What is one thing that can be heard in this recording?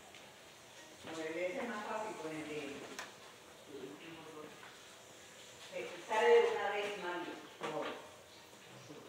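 A young woman talks playfully nearby.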